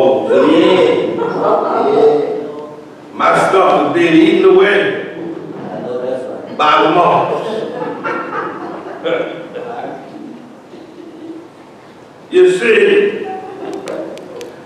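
An elderly man preaches with feeling into a microphone in a large echoing hall.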